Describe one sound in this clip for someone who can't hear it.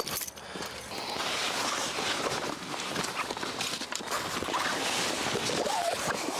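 A man rummages through gear with rustling sounds.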